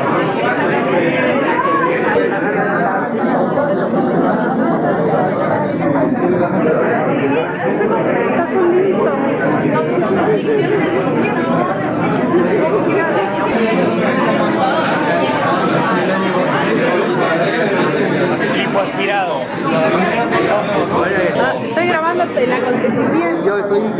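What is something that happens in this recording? A crowd of men and women chatter close by in an echoing room.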